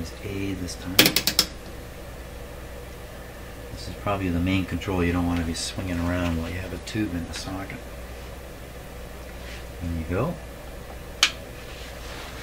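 Switches and knobs click sharply on a piece of equipment.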